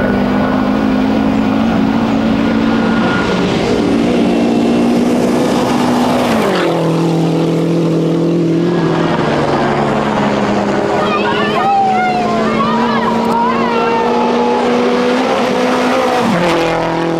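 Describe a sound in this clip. Gravel sprays and crunches under the tyres of a rally car.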